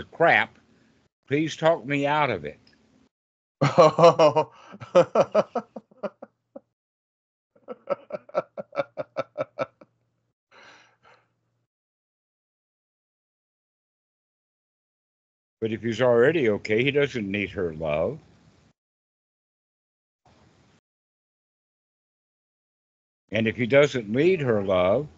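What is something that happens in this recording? An elderly man talks cheerfully through a headset microphone.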